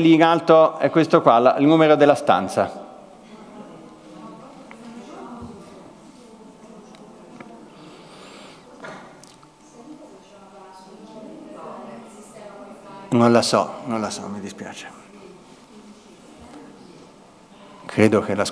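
A crowd of men and women murmur quietly.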